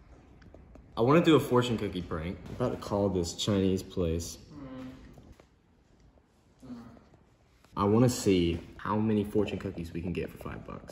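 A young man talks calmly close to the microphone.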